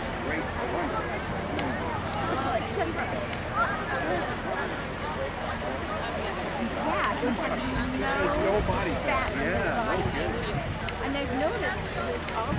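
A crowd of young women and onlookers chatter loudly outdoors.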